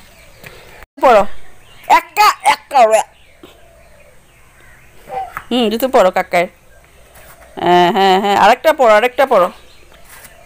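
A toddler babbles and calls out nearby.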